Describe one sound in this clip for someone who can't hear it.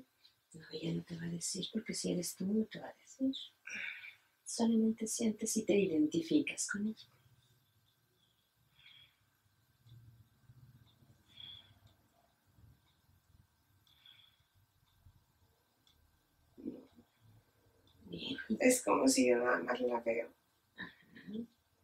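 A middle-aged woman talks calmly nearby, pausing now and then.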